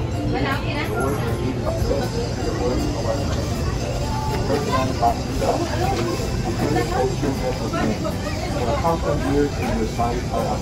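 A small group of people murmur along in response.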